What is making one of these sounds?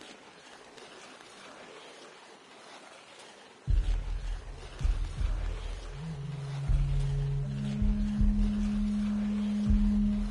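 Hands scrape and grip stone while climbing.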